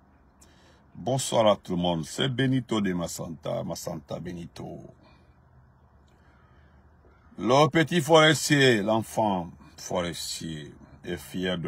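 A man speaks close up and with feeling.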